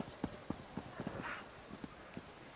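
A large wolf snarls close by.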